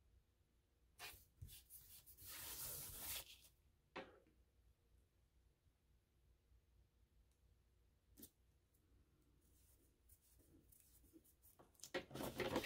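Paper rustles and scrapes as hands press and rub it.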